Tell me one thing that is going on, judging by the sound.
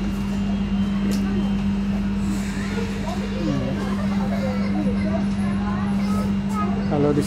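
A train hums steadily as it rolls along.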